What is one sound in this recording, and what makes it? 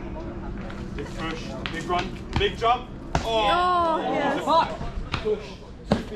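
Young men and women chatter and call out nearby outdoors.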